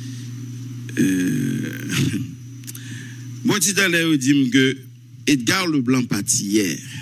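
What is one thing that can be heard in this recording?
A man speaks animatedly and laughs close to a microphone.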